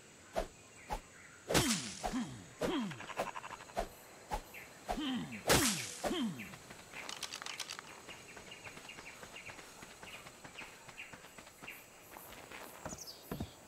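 Footsteps rustle through leaves and grass.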